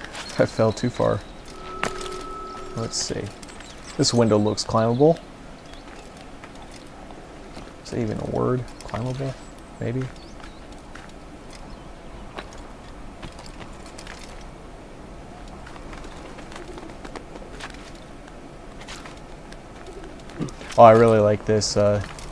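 Hands and feet grip and scrape on stone walls during a climb.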